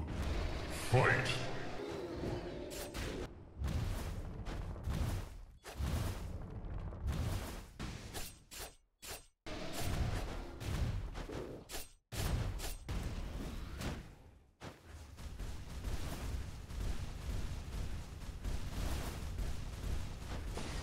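Video game combat sounds of blows and magic blasts ring out.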